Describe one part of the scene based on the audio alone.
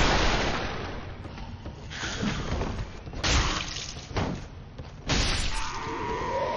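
Swords clash and strike armour with heavy metallic blows.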